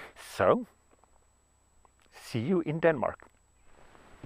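A young man speaks casually and close by.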